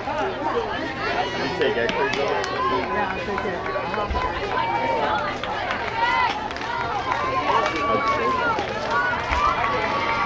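Young girls shout and cheer outdoors, some way off.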